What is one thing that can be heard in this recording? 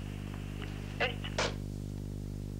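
A telephone handset clatters down onto its cradle.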